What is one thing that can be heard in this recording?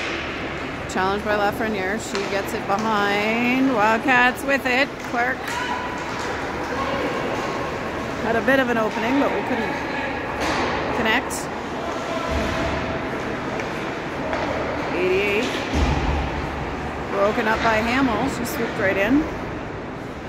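Spectators shout and cheer in a large echoing rink.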